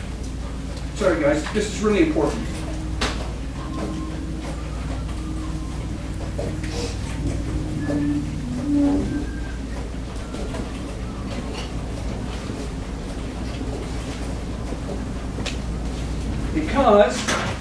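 A man speaks out loud to a group in a room with some echo.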